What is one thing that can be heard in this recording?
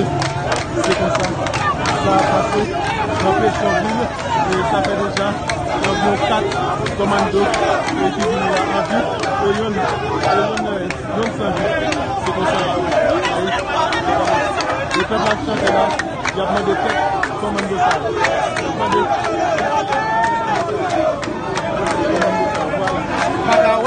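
A large crowd of men and women shouts and chants outdoors.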